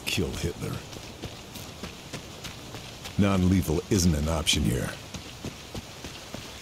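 Footsteps crunch steadily along a gravel path.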